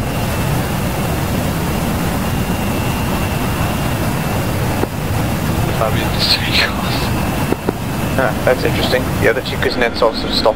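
A jet engine roars steadily close by.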